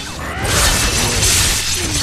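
A whirring blade grinds and tears.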